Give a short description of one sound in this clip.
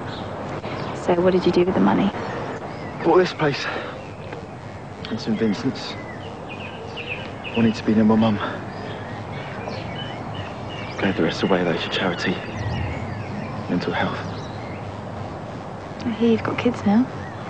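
A young man speaks quietly and calmly up close.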